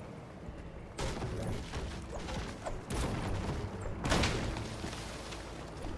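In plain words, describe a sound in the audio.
A pickaxe strikes a tree trunk with loud chopping thuds.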